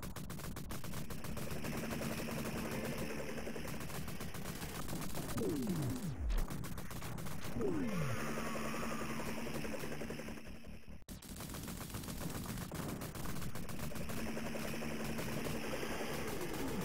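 Rapid gunfire rattles on and on.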